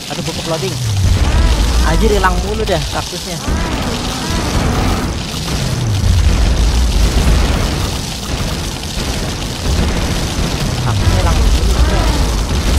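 Deep explosions boom over and over.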